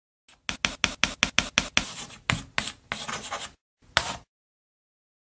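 A pencil scratches quickly across paper in short strokes.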